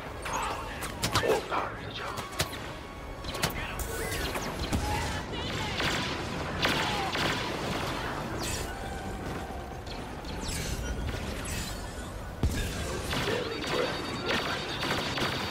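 Blaster shots crack.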